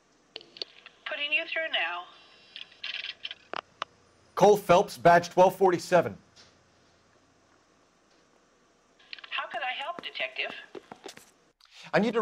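A voice answers faintly through a telephone earpiece.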